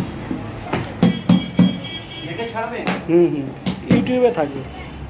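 Paper is pressed flat with sharp taps against the floor.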